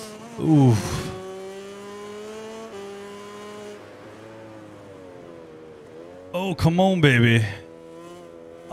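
A racing motorcycle engine whines loudly, revving up and down as it shifts gears.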